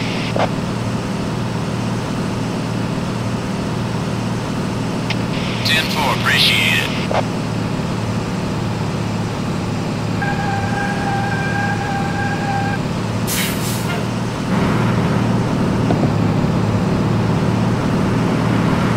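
A truck engine drones steadily at low revs.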